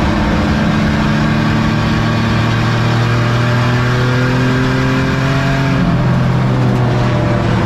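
Tyres rumble and rattle over a rough dirt track.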